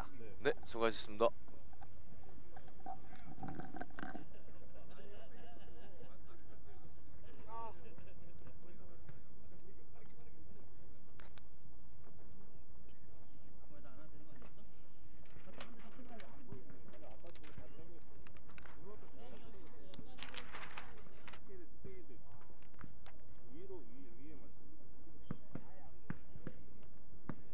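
Young men call out and talk in the distance, outdoors.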